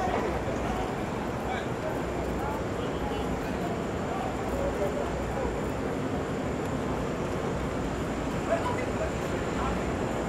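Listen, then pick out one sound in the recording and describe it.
Voices of passers-by chatter nearby.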